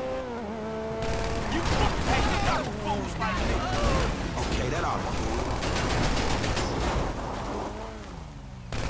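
Tyres rumble and crunch over rough ground.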